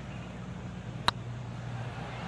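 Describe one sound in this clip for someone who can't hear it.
A putter taps a golf ball with a light click.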